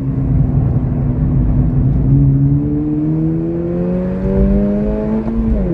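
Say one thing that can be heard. Tyres and wind rumble low and steady against the car.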